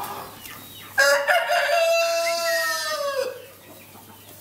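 Ducks quack loudly nearby.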